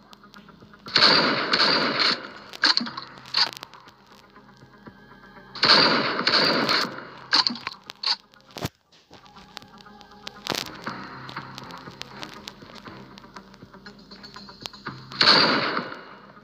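Shotgun blasts boom loudly, each followed by a short burst of rumbling.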